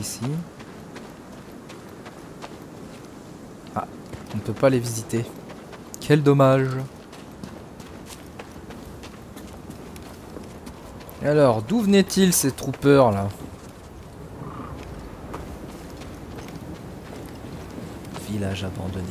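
Footsteps run over stone and gravel.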